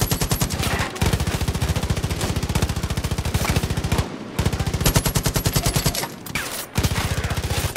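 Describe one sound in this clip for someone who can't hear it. A rifle fires in rapid, steady bursts close by.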